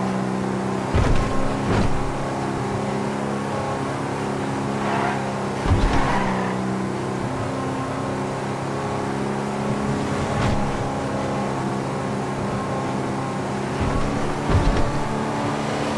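Tyres thump over bumps in the road.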